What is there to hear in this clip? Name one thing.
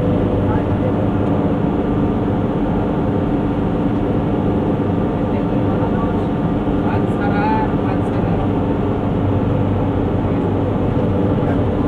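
A car engine hums steadily from inside a moving vehicle.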